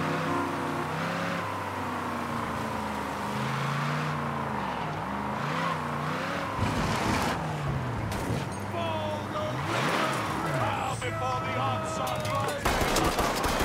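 A car engine revs and whines as the car drives fast.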